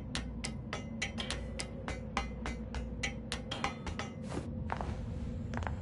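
Metal ladder rungs clank rhythmically as a figure climbs.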